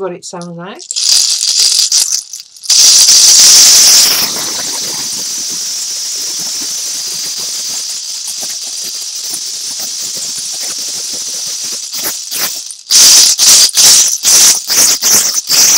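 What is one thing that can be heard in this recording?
A gourd shaker with large seed pods rattles as it is shaken.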